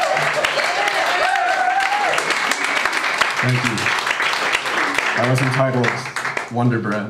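A drummer plays a drum kit with cymbals.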